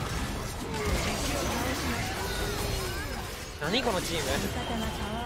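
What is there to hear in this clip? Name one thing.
Game spells and hits crackle and whoosh in a fight.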